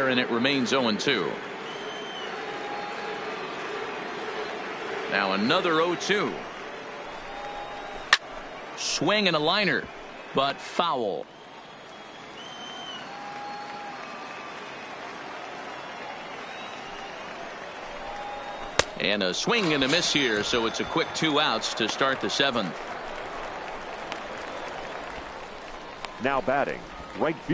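A crowd murmurs steadily in a large open stadium.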